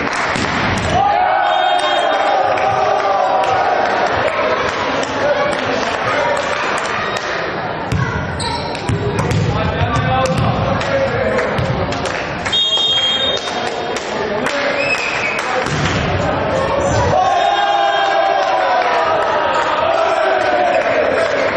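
Young men shout and cheer in an echoing sports hall.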